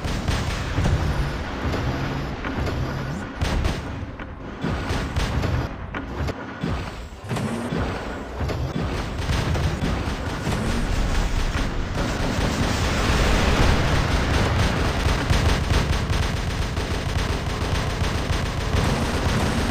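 Heavy metal footsteps of a giant robot thud and clank steadily.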